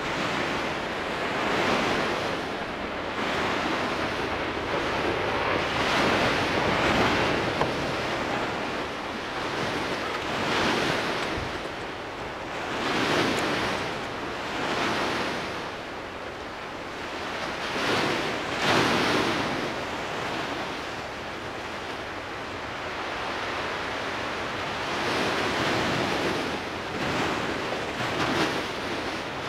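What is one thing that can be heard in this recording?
A billowing ash cloud roars and rumbles in surging waves.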